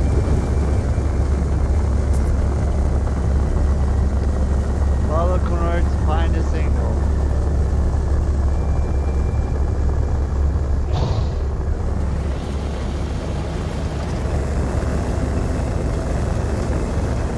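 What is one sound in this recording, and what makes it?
A spaceship engine rumbles with a steady, deep hum.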